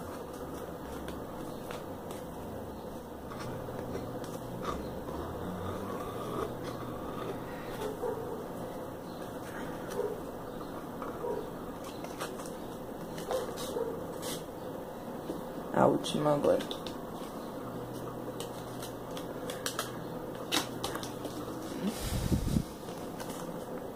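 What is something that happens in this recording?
Thin fabric petals rustle softly as they are handled.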